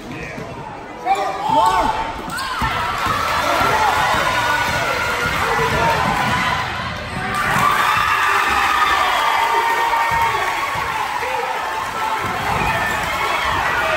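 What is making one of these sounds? A crowd cheers and shouts loudly in an echoing gym.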